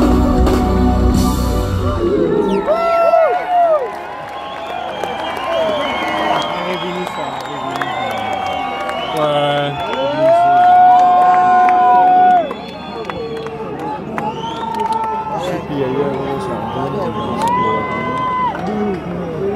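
A crowd of people talks and shouts all around, close by.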